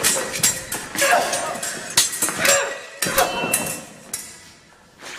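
Fencing blades clash and scrape in a large echoing hall.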